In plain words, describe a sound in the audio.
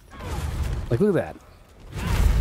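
Metal weapons clash and thud in a fight.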